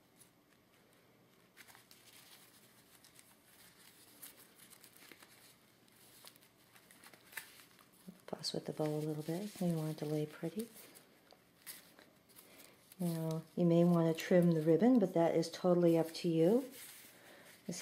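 Fabric rustles softly while it is being tied into a bow.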